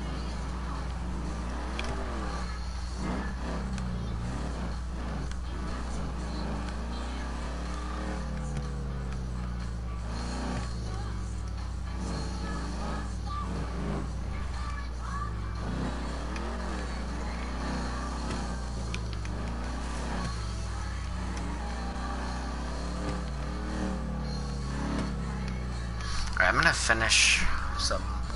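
A car engine rumbles as the car drives slowly over dirt.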